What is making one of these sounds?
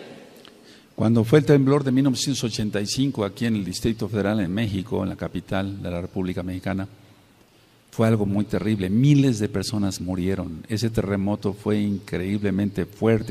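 An elderly man speaks calmly into a microphone in an echoing room.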